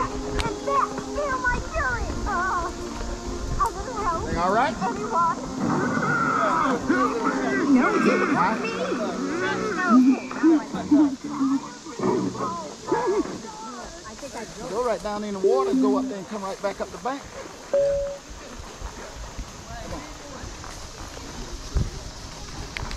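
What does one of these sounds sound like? Horse hooves thud softly on a dirt trail.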